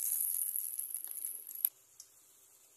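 Hot oil sizzles and crackles as patties fry.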